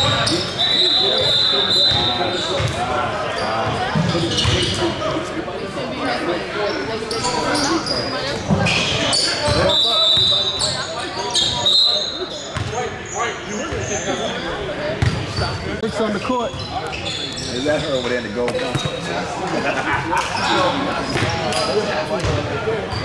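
A crowd of young people and spectators chatters and calls out in a large echoing hall.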